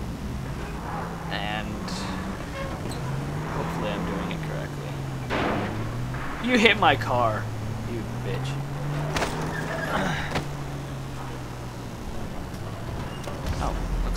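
Footsteps clank on a metal ladder.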